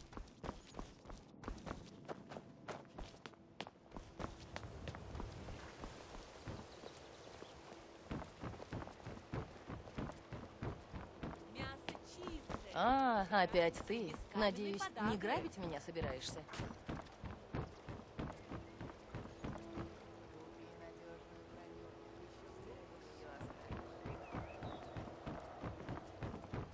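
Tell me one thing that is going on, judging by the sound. Footsteps tread steadily over stone and wooden boards.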